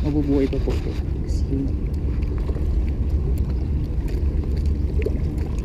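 A small fish flaps and slaps against stone.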